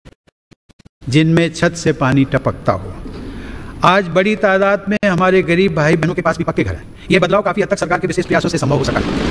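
An elderly man speaks calmly into a microphone, heard through loudspeakers in a large hall.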